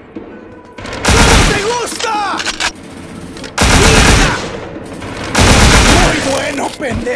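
An automatic gun fires in bursts.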